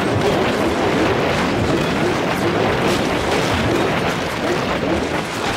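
Cartoonish explosions pop and burst in quick succession.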